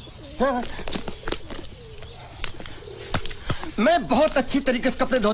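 A man speaks loudly and with animation, close by.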